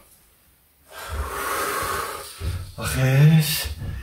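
A man sighs with relief and laughs.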